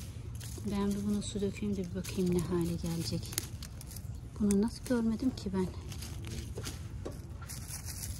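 Leaves rustle softly as a hand brushes through small plants.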